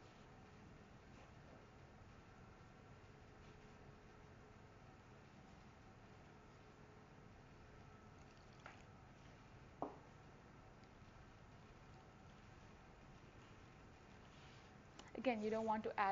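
Gloved hands squish and knead soft dough in a bowl.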